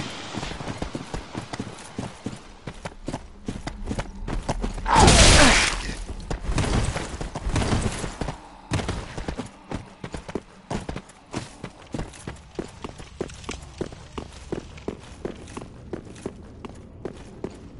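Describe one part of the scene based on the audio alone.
Armored footsteps thud and clink steadily on the ground.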